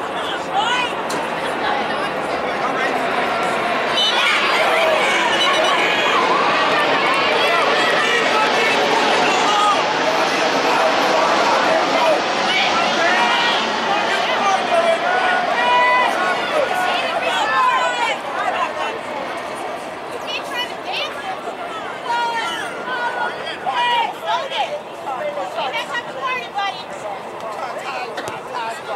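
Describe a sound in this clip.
Players call out to each other across an open field.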